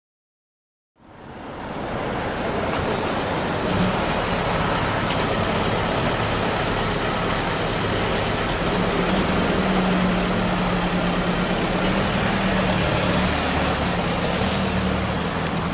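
Traffic noise hums steadily outdoors.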